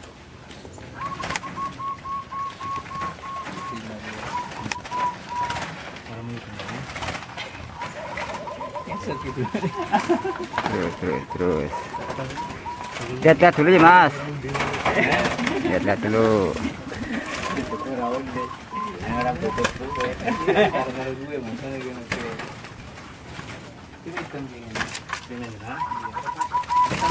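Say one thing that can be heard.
Zebra doves coo in trilling phrases.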